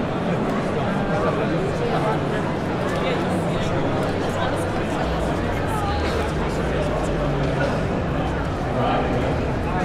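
A large crowd chatters steadily in a big echoing hall.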